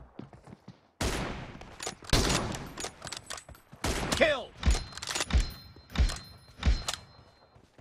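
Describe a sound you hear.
Rifle shots ring out sharply.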